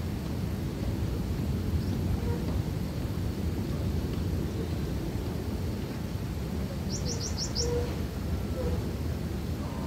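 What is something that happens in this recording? Small animals scurry and rustle through dry litter.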